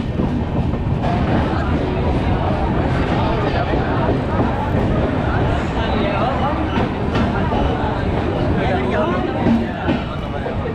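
A crowd of people chatters on a platform.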